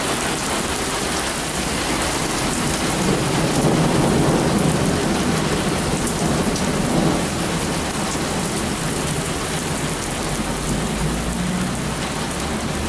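Heavy rain pours down outdoors in gusty wind.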